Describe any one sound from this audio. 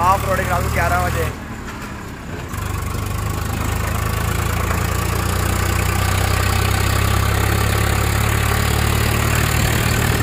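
A vehicle engine rumbles steadily as it drives along.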